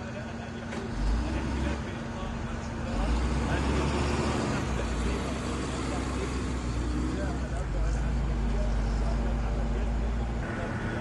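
A heavy engine rumbles low as an armoured vehicle drives past.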